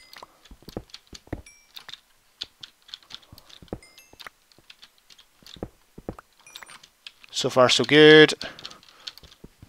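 A pickaxe chips at stone with quick, repeated taps.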